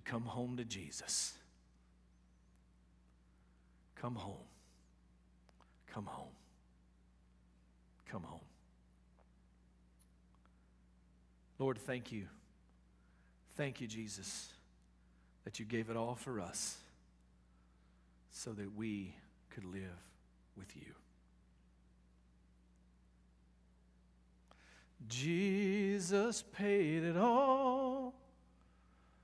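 A middle-aged man speaks slowly and emphatically, with long pauses, in a hall with some echo.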